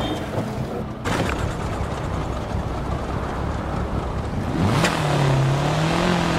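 A rally car engine idles and revs from a short distance.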